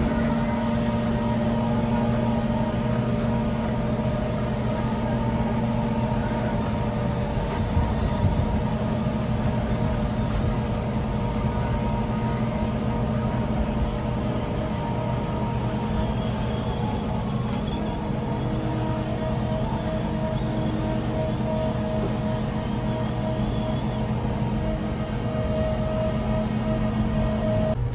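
A trailer's unloading machinery drones and rattles.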